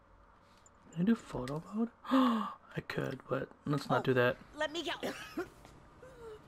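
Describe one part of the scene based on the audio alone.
A middle-aged woman groans in pain.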